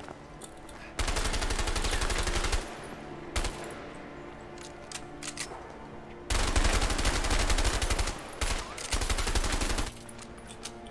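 Automatic gunfire rattles loudly in long bursts.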